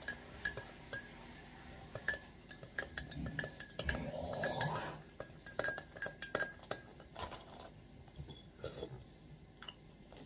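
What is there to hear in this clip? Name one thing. A woman eats and chews close by.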